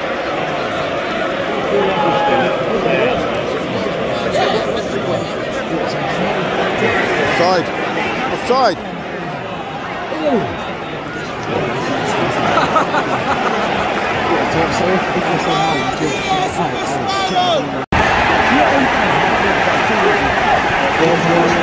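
A large stadium crowd chants and roars loudly in a wide open space.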